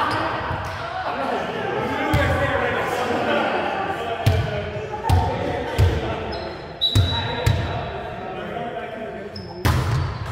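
Players' voices chatter and call out in a large echoing gym.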